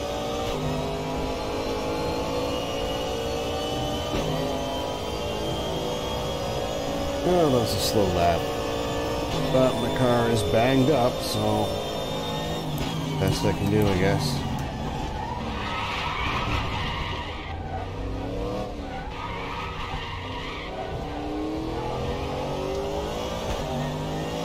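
A racing car engine roars loudly, rising in pitch and dropping back with each gear change.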